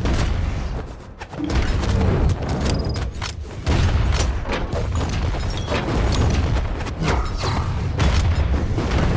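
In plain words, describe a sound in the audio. Game hits and impact effects crack and thump rapidly.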